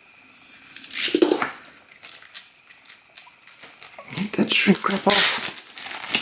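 A plastic wrapper crinkles.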